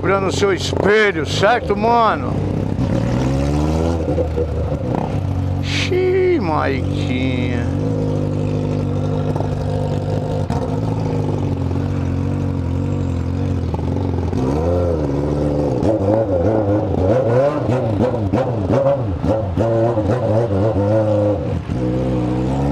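A motorcycle engine revs up and down in quick bursts.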